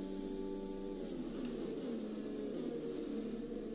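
A Formula One car engine drops in pitch as it downshifts under braking.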